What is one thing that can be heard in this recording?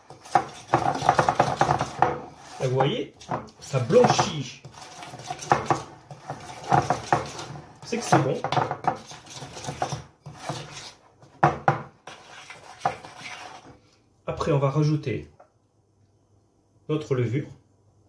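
A spoon scrapes and taps against a glass bowl.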